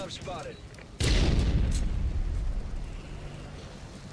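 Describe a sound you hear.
A loud explosion booms with a deep rumble.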